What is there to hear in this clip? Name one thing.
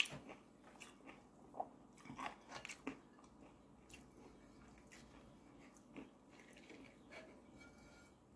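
Fingers tear and pick at crispy food close to a microphone.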